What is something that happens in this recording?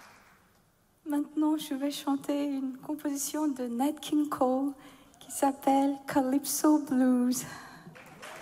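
A woman sings into a microphone in a reverberant hall.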